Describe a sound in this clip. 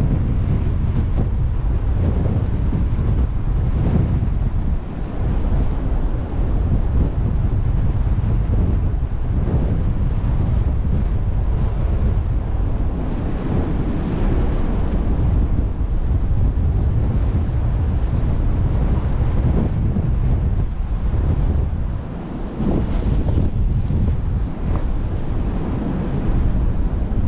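Strong wind roars and buffets outdoors.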